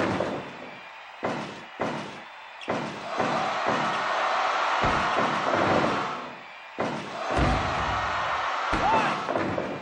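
Heavy thuds ring out as bodies slam onto a wrestling mat.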